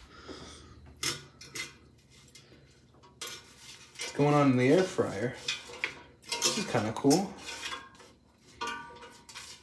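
A spoon clinks and scrapes against a metal pot.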